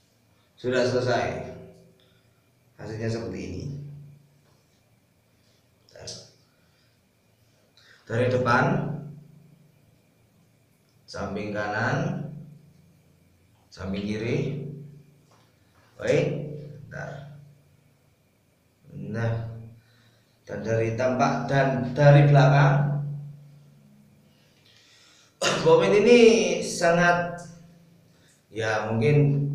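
A man talks close by in short bursts, in a small echoing room.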